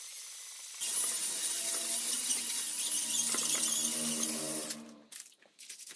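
A power drill whirs loudly.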